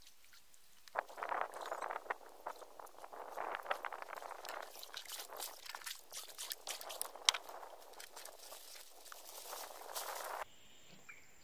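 A paddle splashes and swishes through water.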